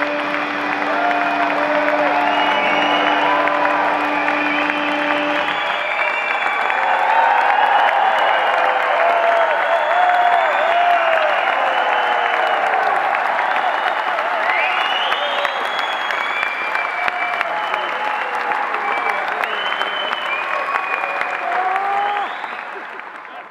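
People in a crowd whistle and shout.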